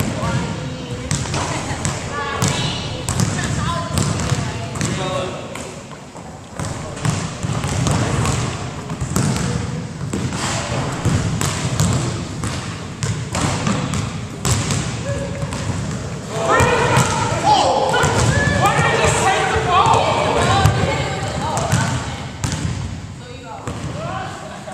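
Young men talk and call out to each other across the gym.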